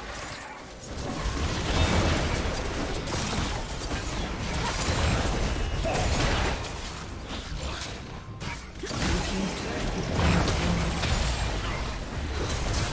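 Magic blasts and impacts crash and whoosh in a video game battle.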